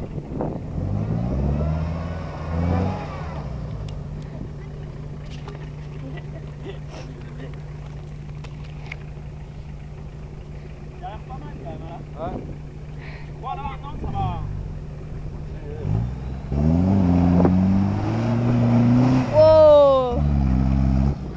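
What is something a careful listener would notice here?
A vehicle engine revs hard as it climbs a bumpy slope.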